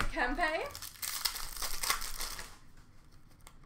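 Plastic wrapping rustles and crinkles as it is handled.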